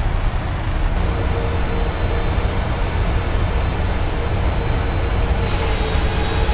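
A jet engine whines loudly close by.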